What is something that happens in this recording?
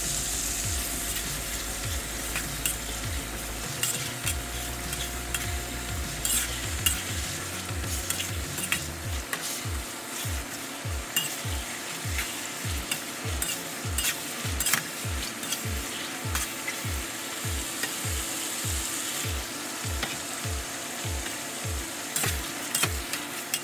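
A metal spatula scrapes and clanks against a wok.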